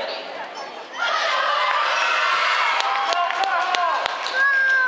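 Young girls shout a cheer in unison in an echoing hall.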